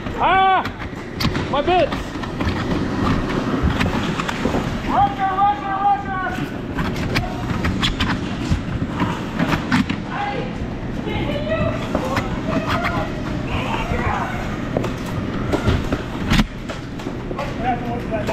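Young people shout and yell excitedly in a large echoing hall.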